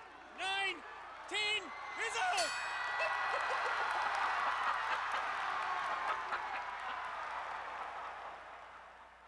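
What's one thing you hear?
A crowd cheers and roars in a large hall.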